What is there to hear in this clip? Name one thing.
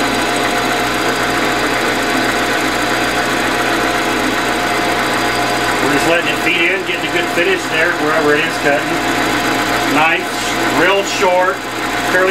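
A cutting tool scrapes and hisses against spinning metal.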